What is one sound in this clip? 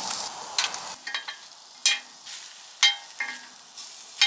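A wooden spatula scrapes and taps against a cast-iron pan while stirring.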